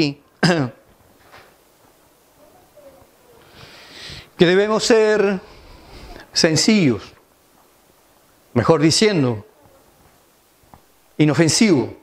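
A middle-aged man speaks through a microphone in short bursts with pauses.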